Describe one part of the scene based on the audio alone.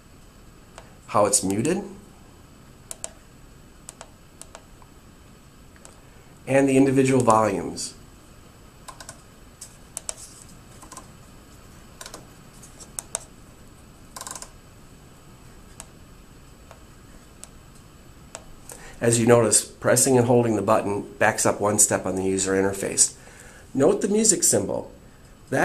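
Fingers press buttons on a panel with soft clicks.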